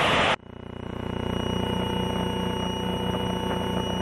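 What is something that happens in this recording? A man talks through a headset microphone over the engine noise.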